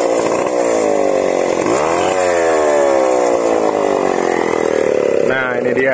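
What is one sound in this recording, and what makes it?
A two-stroke chainsaw revs, dropping in pitch and climbing again.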